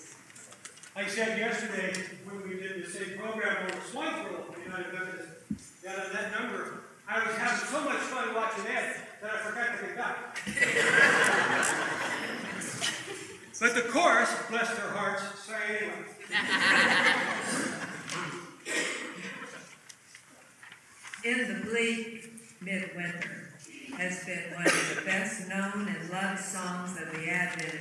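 A large choir sings in a reverberant hall.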